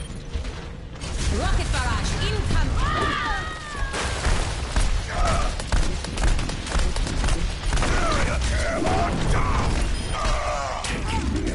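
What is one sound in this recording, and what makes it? Guns fire in rapid bursts in a video game.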